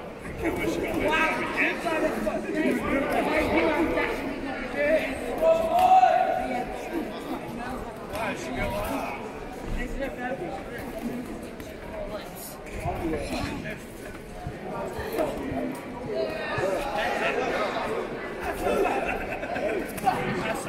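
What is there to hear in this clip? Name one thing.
Gloved punches thud against bodies.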